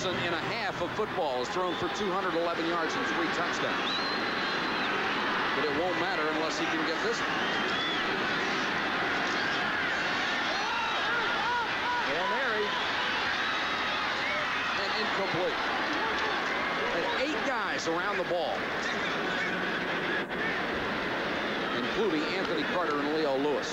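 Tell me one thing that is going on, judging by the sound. A large crowd roars and cheers in a big stadium.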